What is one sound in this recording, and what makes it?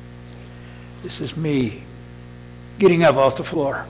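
An older man speaks slowly and deliberately into a microphone.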